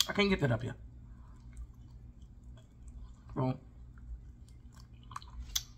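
A woman chews food with wet, smacking sounds close to a microphone.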